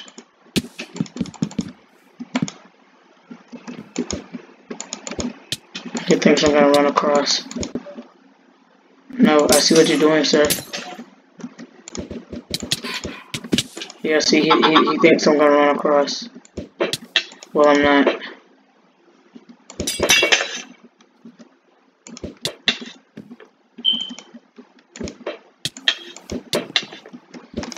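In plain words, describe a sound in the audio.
A video game plays short clicking and popping effects as blows land.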